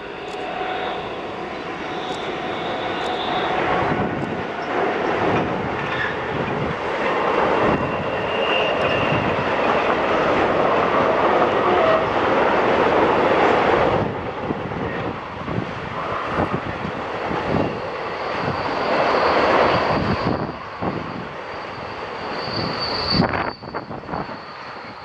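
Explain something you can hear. A long freight train rumbles and clatters past on the tracks.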